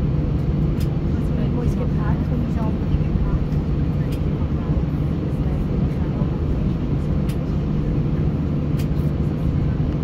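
The airliner's wheels rumble and thump over the runway.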